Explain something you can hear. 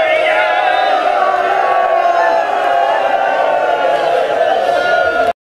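A man chants loudly through a loudspeaker in a large gathering.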